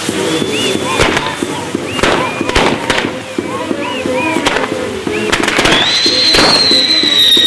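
Fireworks bang loudly several times.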